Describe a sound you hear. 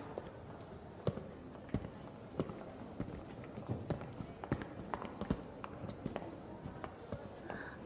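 Boots clack on a hard floor in a large echoing hall.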